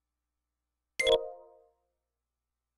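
A short electronic menu chime sounds once.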